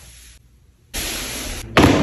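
Footsteps tap across a hard floor.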